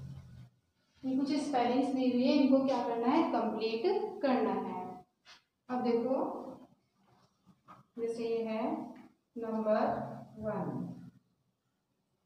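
A woman speaks clearly and calmly, as if teaching.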